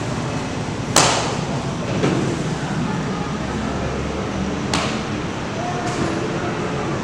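A martial arts uniform snaps sharply with quick strikes and kicks.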